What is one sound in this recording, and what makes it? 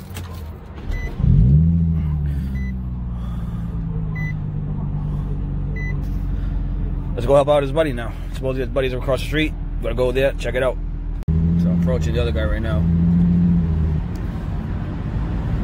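A car engine starts with a rev and then idles steadily.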